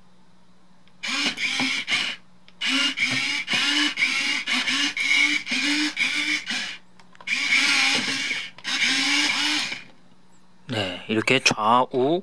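A toy robot plays loud electronic music and sound effects.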